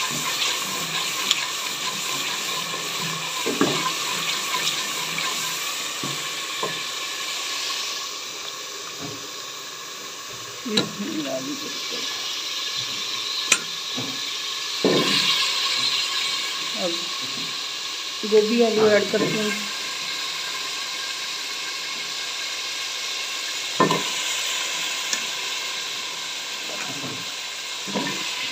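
Oil sizzles and bubbles steadily in a pot.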